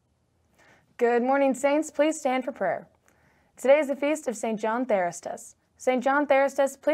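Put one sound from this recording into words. A young woman speaks clearly into a microphone, reading out calmly.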